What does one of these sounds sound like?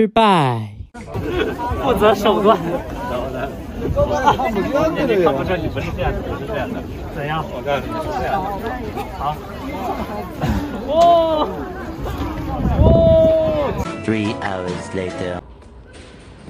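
A crowd of people chatter and shout loudly outdoors.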